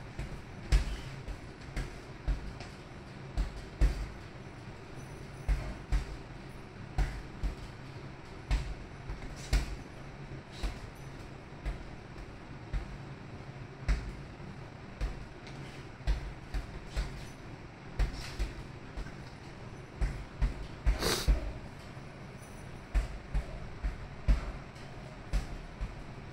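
Punches thud against a heavy bag in quick bursts.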